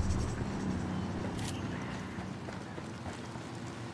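Footsteps crunch on a dirt road.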